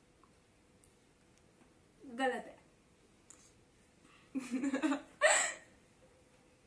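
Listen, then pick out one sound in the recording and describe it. A young girl laughs close by.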